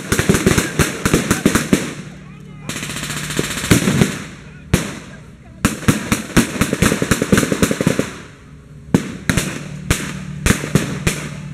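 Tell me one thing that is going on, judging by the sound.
Rifles and machine guns fire in rapid bursts outdoors.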